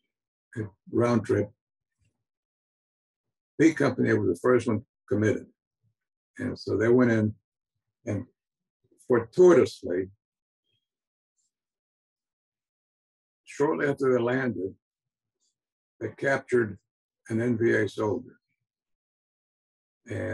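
An elderly man speaks calmly in short phrases with pauses, heard through an online call.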